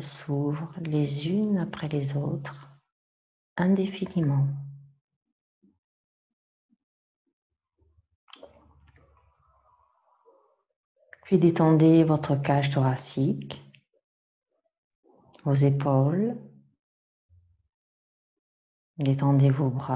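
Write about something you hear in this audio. A woman speaks calmly and slowly through a close microphone, pausing between phrases.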